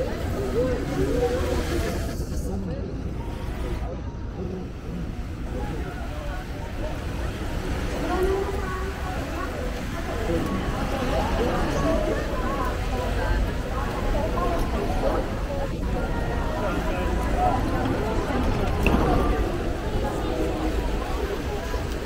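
Rain patters on the wet pavement and umbrellas.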